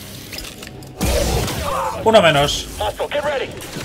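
A lightsaber hums and swishes through the air.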